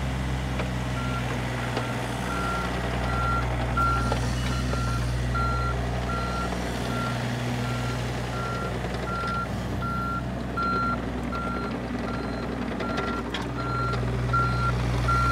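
A travel alarm beeps steadily and quickly on a small excavator.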